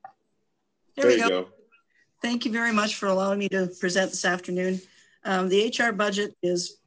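An older woman speaks calmly over an online call.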